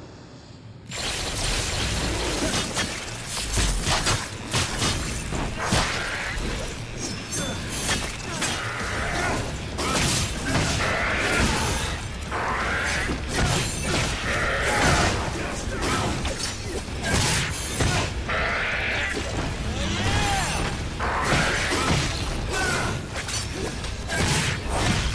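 Blades slash and clang in a fast, busy fight.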